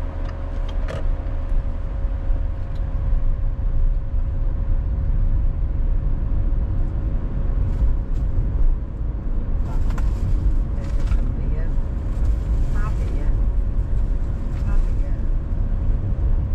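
Wind rumbles steadily past a slowly moving vehicle.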